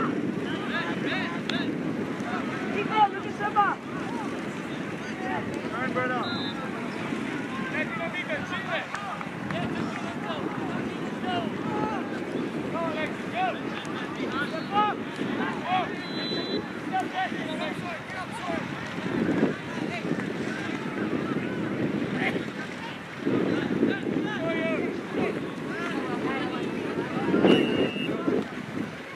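A crowd of spectators chatters and shouts from the sidelines outdoors.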